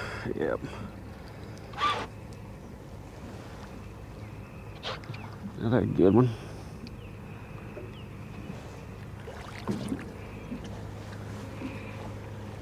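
A fishing reel clicks and whirs as a line is wound in.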